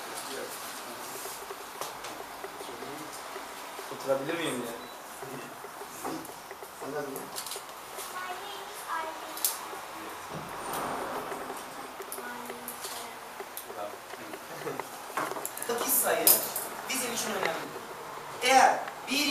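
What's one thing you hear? Children chatter and talk in a room.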